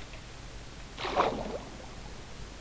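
A loud splash sounds as something plunges into water.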